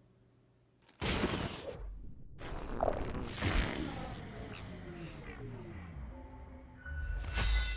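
A cartoon boy lets out a long, loud fart.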